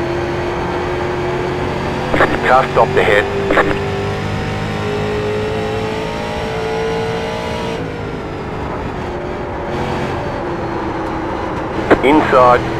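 A race car engine drones steadily at high speed.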